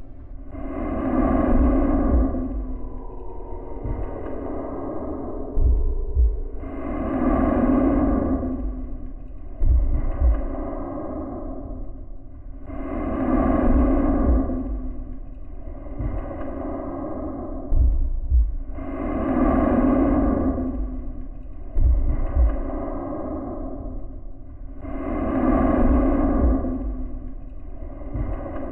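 Slow, looping game music plays with low pulsing notes.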